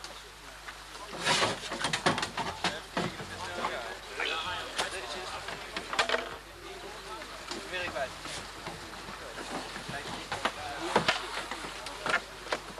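Young people talk and call out to each other nearby, outdoors.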